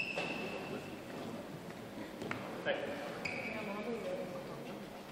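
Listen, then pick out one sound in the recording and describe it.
Rackets strike a shuttlecock in a quick rally.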